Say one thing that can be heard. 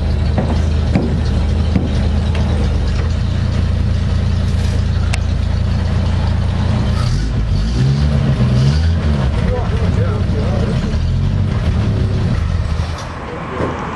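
A truck engine idles with a low, rumbling throb and then cuts off.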